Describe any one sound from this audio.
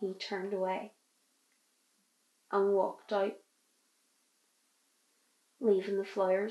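A young woman speaks softly and haltingly, close to the microphone.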